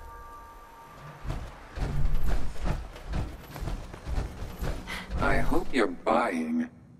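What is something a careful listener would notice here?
Heavy metal footsteps clank and thud.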